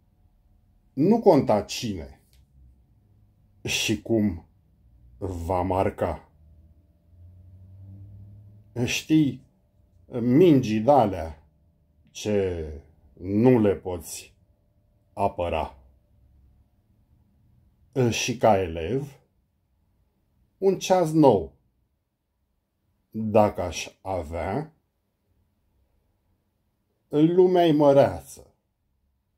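A middle-aged man speaks close to the microphone in short, calm phrases with pauses between them.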